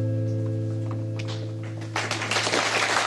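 An acoustic guitar chord rings out and fades.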